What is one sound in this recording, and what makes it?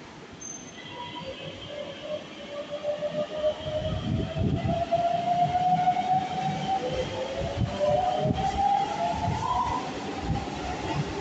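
A train's electric motor whines, rising in pitch as it pulls away.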